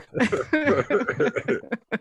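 A middle-aged man laughs over an online call.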